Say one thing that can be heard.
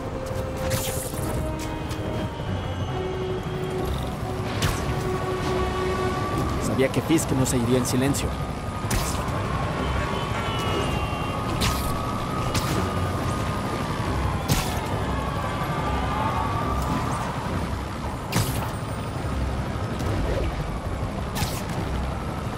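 Web lines shoot out with sharp thwips.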